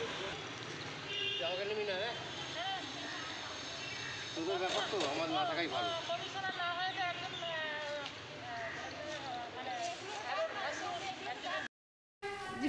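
Several women talk with animation outdoors.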